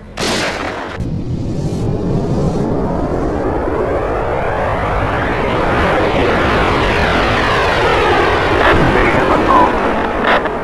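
A bullet whooshes through the air with a rising rush.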